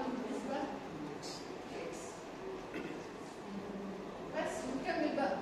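A woman speaks steadily in a lecturing tone, close by.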